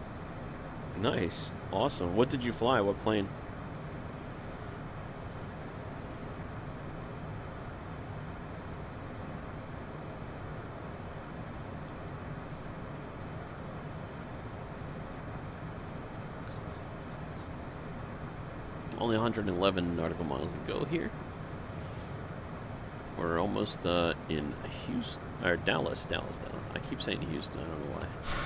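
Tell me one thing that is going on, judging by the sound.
A man talks calmly into a close headset microphone, in short bursts.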